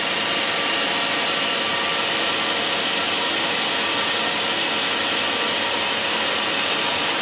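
A band saw whines loudly as it cuts through a log.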